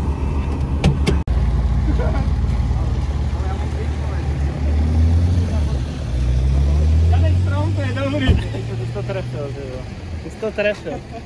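A car engine rumbles and revs nearby.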